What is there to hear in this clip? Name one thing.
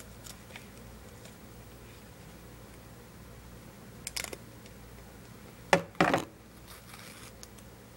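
Plastic clicks and knocks as a game controller is handled.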